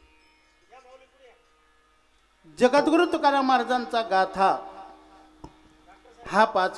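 A middle-aged man sings loudly into a microphone, with pauses between phrases.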